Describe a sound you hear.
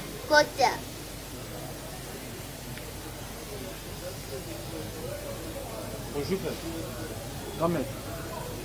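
A man talks loudly nearby, in short bursts.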